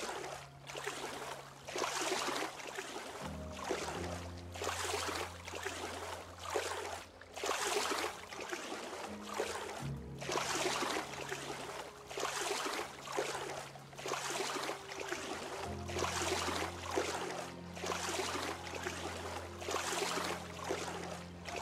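Water splashes in rhythmic strokes as a swimmer paddles.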